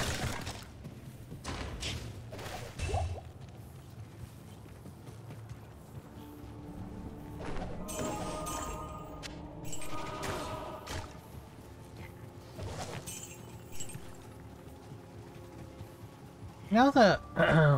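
Magic spells and combat sound effects from a game crackle and thud.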